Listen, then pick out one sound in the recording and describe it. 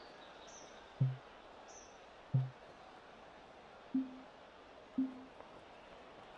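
A golf ball thuds and bounces on grass.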